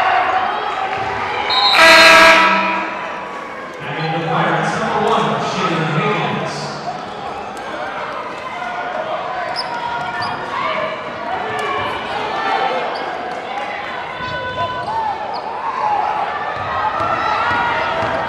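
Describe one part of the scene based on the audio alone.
A crowd chatters and cheers in a large echoing gym.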